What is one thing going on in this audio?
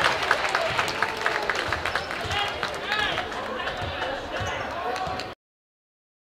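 A large crowd chatters in an echoing gym.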